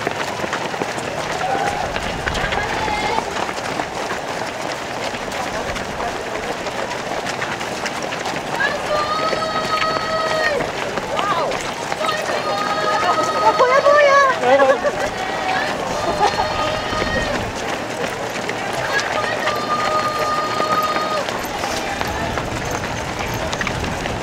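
A crowd of spectators cheers and calls out nearby.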